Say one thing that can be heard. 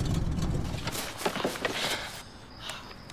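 A car door opens and thuds.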